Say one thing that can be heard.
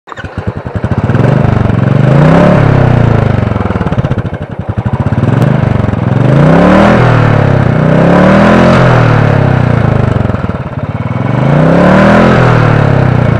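A motorcycle engine starts up close by and revs again and again, rising and falling.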